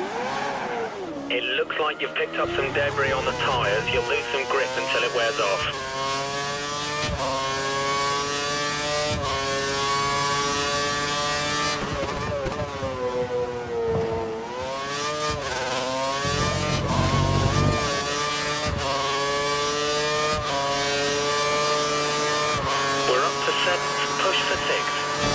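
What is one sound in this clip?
A racing car engine screams at high revs, rising and falling as it shifts gears and slows for corners.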